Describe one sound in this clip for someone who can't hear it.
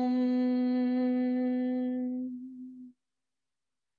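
A woman hums a long, steady note that fades out.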